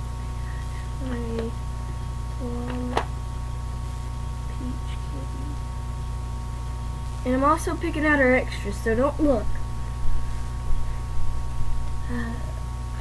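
A young girl speaks in short bursts close by.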